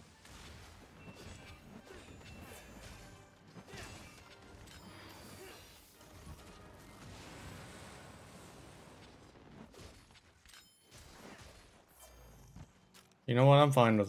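Metal blades clash and strike in a fight, with whooshing effects.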